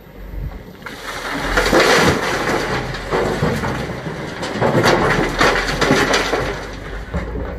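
Rocks tumble and crash into a rail wagon from a tipping bucket.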